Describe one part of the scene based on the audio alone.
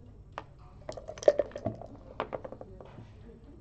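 Dice rattle and tumble across a board.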